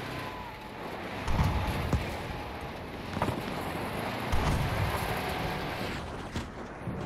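A vehicle engine rumbles as it drives.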